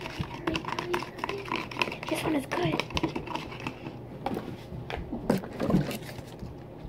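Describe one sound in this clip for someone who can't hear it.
A spoon clinks and scrapes against a plastic jar.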